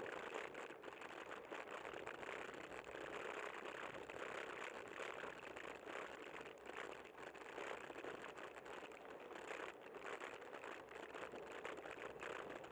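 Wind rushes steadily past a moving vehicle.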